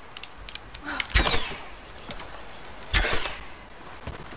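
A bowstring snaps as arrows are loosed.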